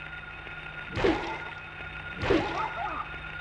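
Heavy blows thud as a fighter strikes a creature.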